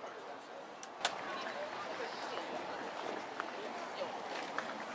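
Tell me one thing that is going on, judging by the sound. A crowd of men and women chatters in the distance outdoors.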